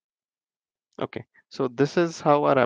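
A young man speaks calmly through a headset microphone.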